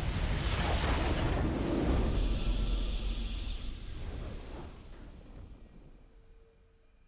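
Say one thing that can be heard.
A loud, booming game victory fanfare plays and slowly fades away.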